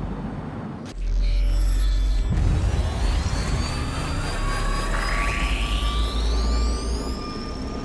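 A deep rushing roar surges in suddenly and then eases off.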